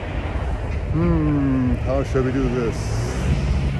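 An elderly man speaks close by.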